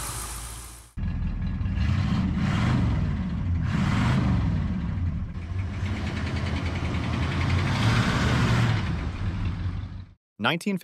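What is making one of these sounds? A car engine rumbles through its exhaust outdoors, revving now and then.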